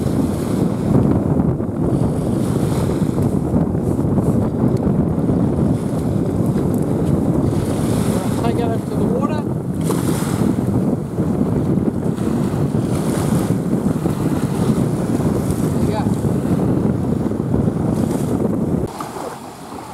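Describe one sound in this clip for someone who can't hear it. Small waves wash and break on a shore.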